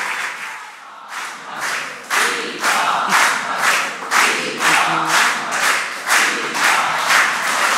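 A crowd of men and women chants in rhythm.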